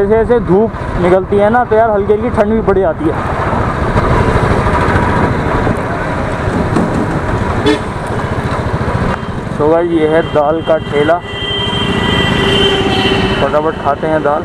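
A motorcycle engine rumbles steadily while riding along a road.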